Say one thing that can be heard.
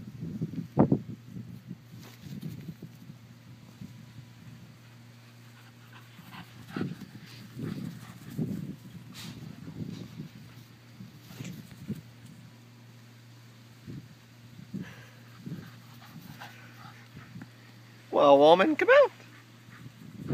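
Dogs run and rustle through dry grass.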